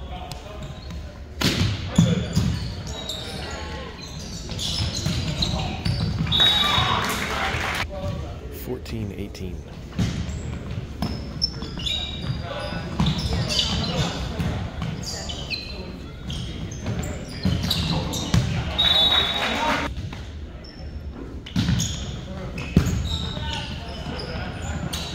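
A crowd cheers and shouts from the stands.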